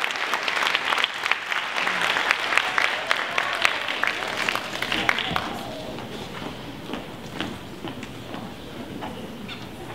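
Shoes tap on a wooden stage floor.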